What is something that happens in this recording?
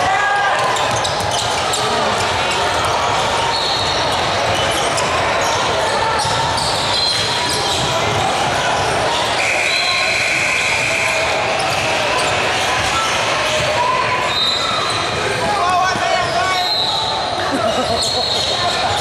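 A crowd chatters and calls out in a large echoing gym.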